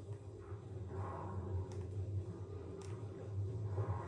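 Bubbles gurgle and rise in short bursts.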